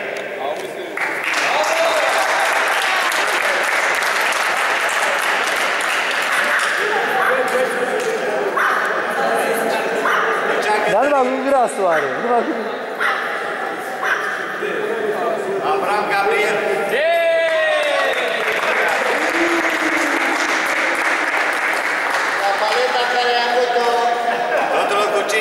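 A small group of people applauds steadily in a large echoing hall.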